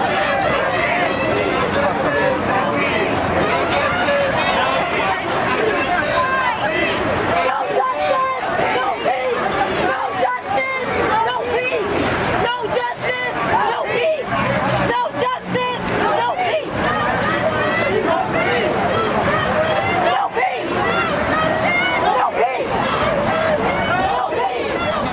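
A crowd of men and women chants and shouts loudly outdoors nearby.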